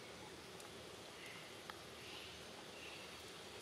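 A young monkey chews softly.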